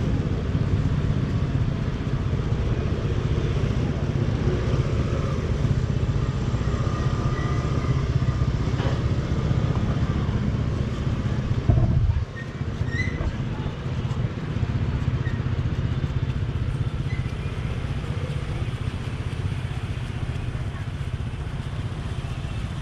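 A knife slices through pineapple flesh.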